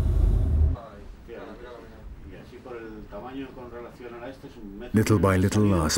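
A man speaks quietly nearby.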